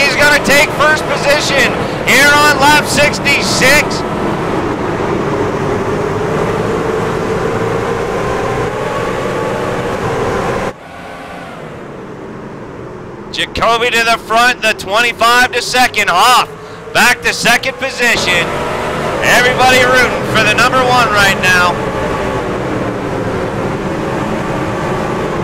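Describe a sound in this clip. Racing engines drone steadily as trucks circle the track.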